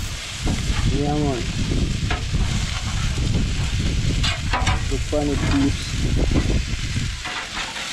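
Chicken sizzles and crackles on a hot grill.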